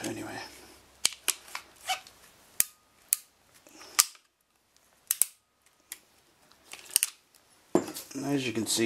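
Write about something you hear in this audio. A crimping tool clicks and clacks.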